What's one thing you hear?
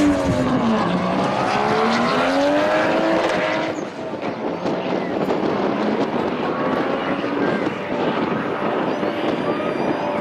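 A second car engine roars and revs as it races down the track.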